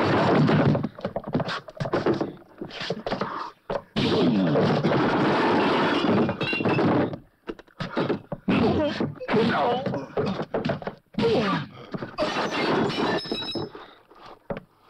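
Punches thud as men brawl.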